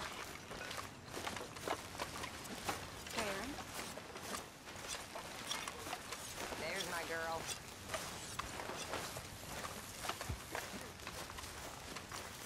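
Footsteps tread steadily through grass.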